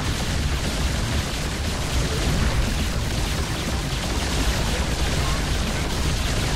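Game gunfire and explosions rattle steadily.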